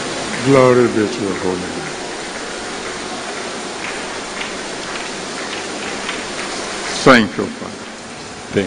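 A man calls out loudly through a loudspeaker.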